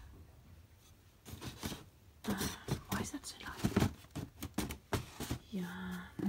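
A hand brushes and knocks against cardboard boxes.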